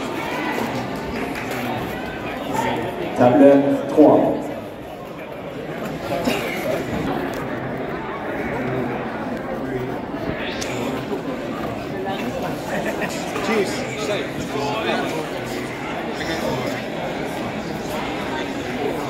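A crowd of young men chatters throughout in an echoing room.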